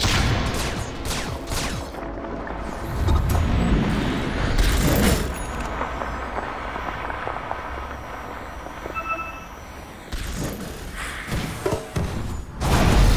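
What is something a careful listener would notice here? Magic spells whoosh and zap in bursts.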